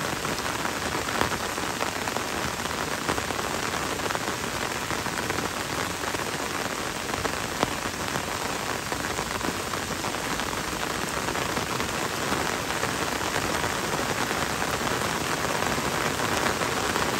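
Gentle rain falls on leaves and a wet road.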